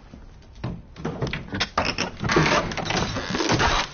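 Metal clinks and scrapes against a wooden crate.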